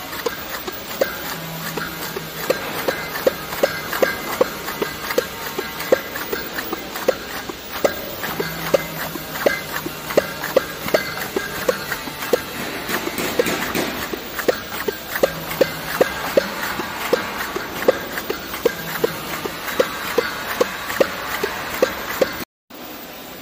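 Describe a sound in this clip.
A labelling machine ticks rapidly as labels are applied.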